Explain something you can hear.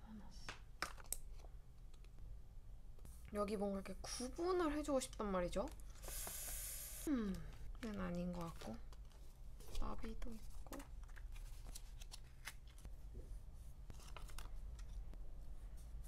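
A sticker sheet rustles and peels as stickers are pulled off.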